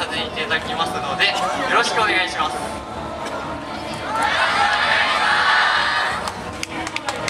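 A group of young men and women shout and call out together outdoors.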